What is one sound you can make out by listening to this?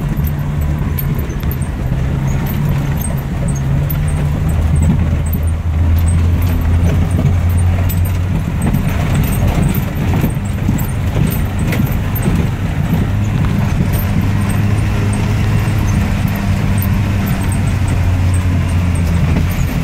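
A vehicle engine hums low and steady as it drives.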